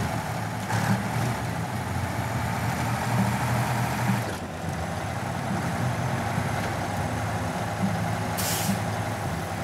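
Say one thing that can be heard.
A heavy truck engine rumbles and strains at low speed.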